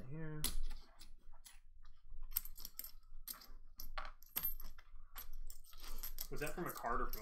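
Game pieces click and tap on a board.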